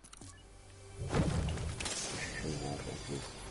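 A treasure chest in a video game chimes and bursts open.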